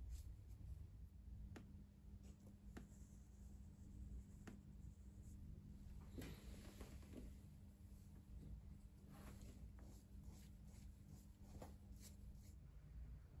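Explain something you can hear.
A small brush taps and scrapes softly against a bottle and leather.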